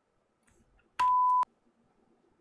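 A steady test tone beeps briefly.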